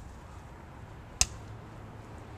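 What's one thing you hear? A child's plastic bat thwacks a hollow plastic ball.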